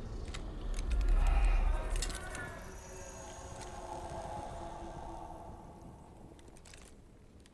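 Metal armour creaks and clinks as a heavy figure moves.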